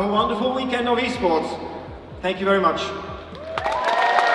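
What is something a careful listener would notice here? A man sings through a microphone in a large hall.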